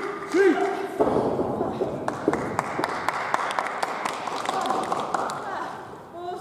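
An audience claps in quick rhythm.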